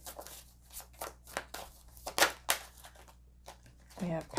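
Playing cards shuffle with quick papery flicks.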